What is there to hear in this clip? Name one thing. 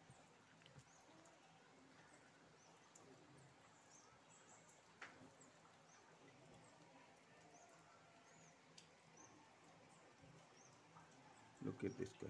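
Coins click lightly against each other.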